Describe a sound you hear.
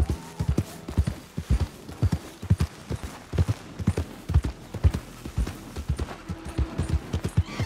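Horse hooves thud steadily on soft ground at a gallop.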